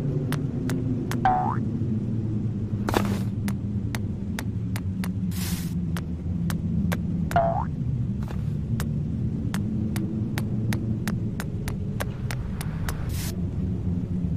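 Light footstep sound effects tap quickly as a cartoon character runs.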